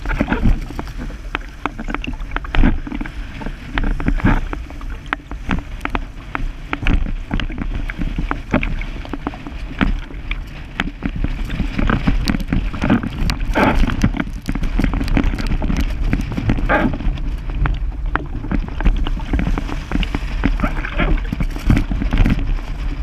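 Water splashes and slaps against a board.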